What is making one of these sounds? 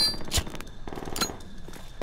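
A lit fire bottle crackles and hisses.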